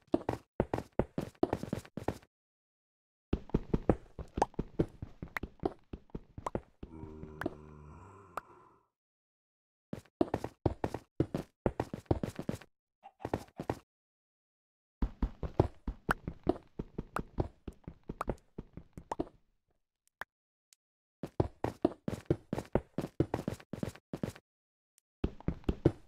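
A pickaxe chips at stone in rapid, repeated taps.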